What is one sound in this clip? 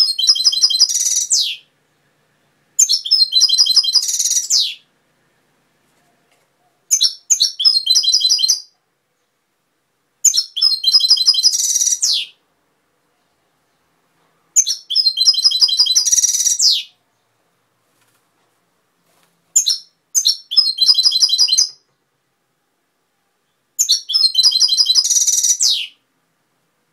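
A small songbird sings close by in short bursts of fast, twittering, buzzing song, with silent gaps between.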